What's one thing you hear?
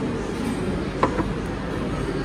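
A plate is set down on a hard table with a clatter.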